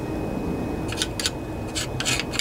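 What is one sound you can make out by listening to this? A hand fiddles with a small engine, making light clicks.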